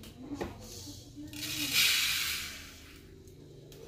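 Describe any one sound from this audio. Toasted grains pour from a pot onto a plate with a soft rush.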